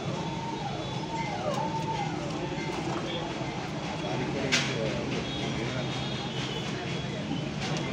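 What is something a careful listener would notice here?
Tomatoes thud softly into a metal bowl.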